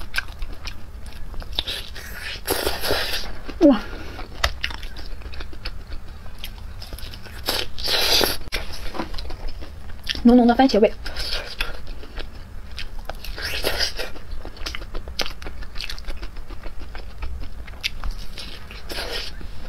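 A young woman chews crunchy food close to a microphone, with loud crisp crunches and wet smacking.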